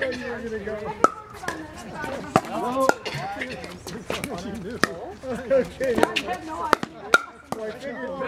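Pickleball paddles pop against a plastic ball outdoors.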